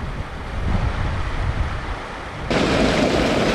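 A small stream trickles over stones.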